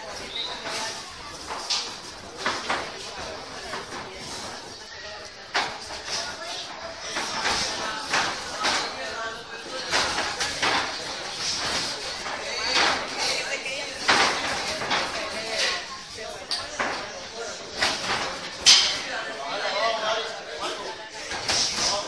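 Feet shuffle and stamp on a padded floor.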